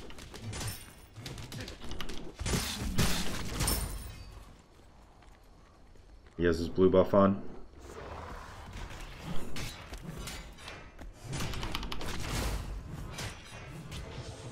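Sword slashes and magic blasts whoosh and clang in a video game.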